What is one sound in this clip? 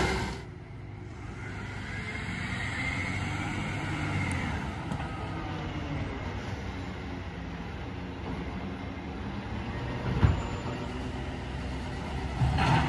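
A garbage truck hums in the distance.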